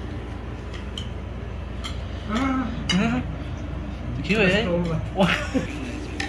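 A spoon scrapes and clinks against a glass dish.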